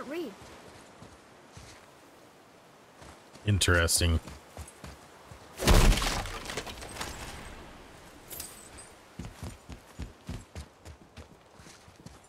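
Heavy footsteps thud on a stone floor.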